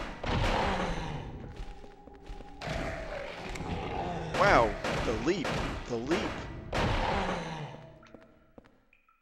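Wet stabbing thuds strike a body in a video game.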